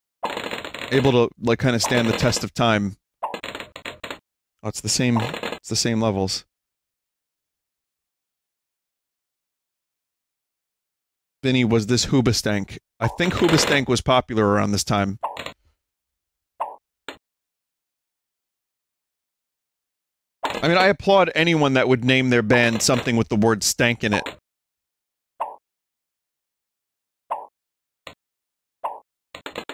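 Balloons pop in quick bursts.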